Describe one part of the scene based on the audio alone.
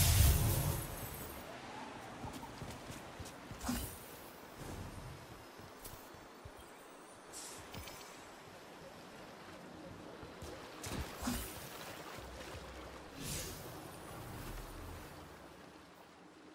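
Video game sound effects whoosh and thud now and then.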